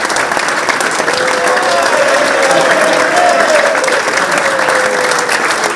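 A man sings into a microphone over the applause.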